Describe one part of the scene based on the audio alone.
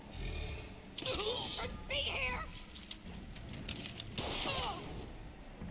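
A crossbow is cocked and loaded with a sharp mechanical click.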